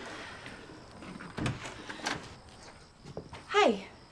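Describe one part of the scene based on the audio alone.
A door opens.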